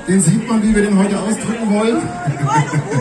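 A man sings into a microphone through a loudspeaker system.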